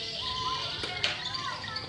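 A racket strikes a shuttlecock with a sharp pop.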